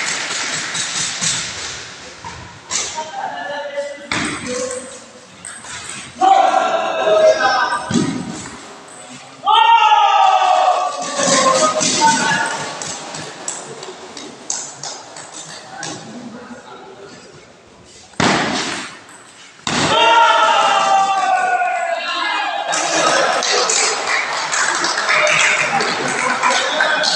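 A ping pong ball clicks back and forth across a table.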